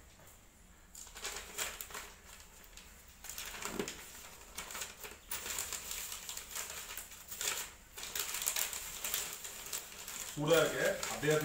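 Paper rustles and crinkles as it is folded and rolled.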